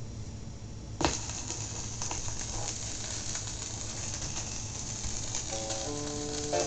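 Vinyl surface noise hisses and crackles steadily.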